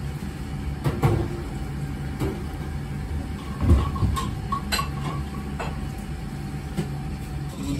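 Chopsticks lightly clink against a ceramic bowl.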